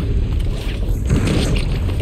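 An energy beam hisses and crackles.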